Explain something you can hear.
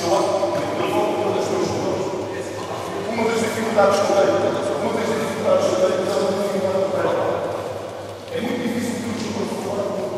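A crowd of young people chatters throughout a large echoing hall.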